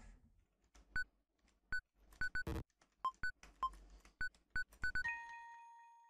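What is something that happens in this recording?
Short electronic menu beeps blip one after another.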